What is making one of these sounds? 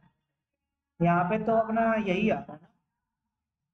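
A young man speaks clearly and closely into a microphone.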